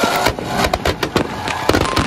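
A large fire roars.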